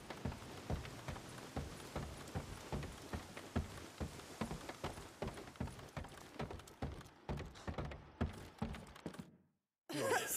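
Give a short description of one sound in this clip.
Footsteps thud on wooden stairs and planks.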